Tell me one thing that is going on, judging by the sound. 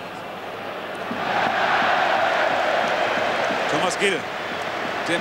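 A stadium crowd roars loudly as an attack nears the goal.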